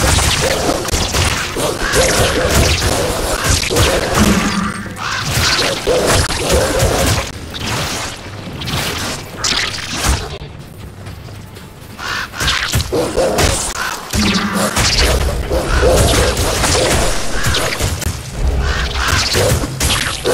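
Magic spells crackle and burst in quick succession.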